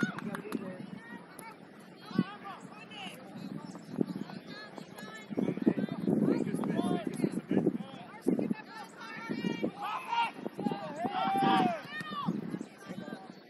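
Young players shout and call to each other across an open field outdoors.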